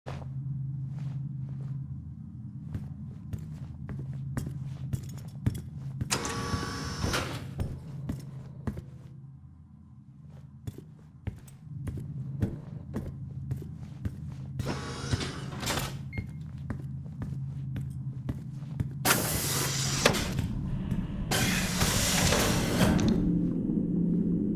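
Heavy boots step steadily across a hard floor.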